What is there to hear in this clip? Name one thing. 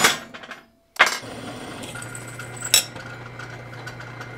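A drill press whirs, boring into steel.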